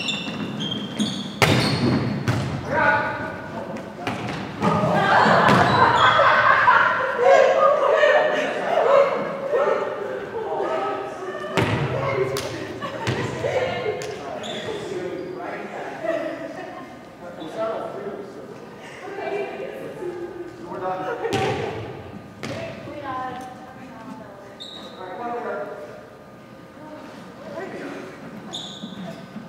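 Young women talk and call out in a large echoing hall.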